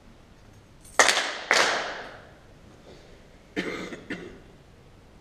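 A group of people clap their hands sharply in unison, echoing in a large hall.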